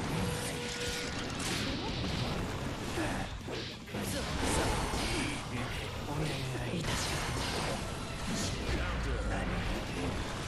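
Fighting game blows land with sharp, rapid impact sounds.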